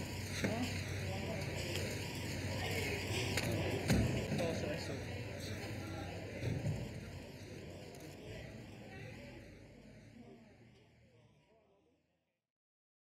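A crowd of photographers calls out and chatters outdoors.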